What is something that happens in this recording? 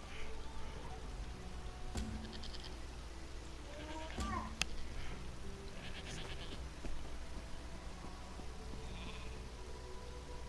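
Footsteps swish through grass and then tap on stone.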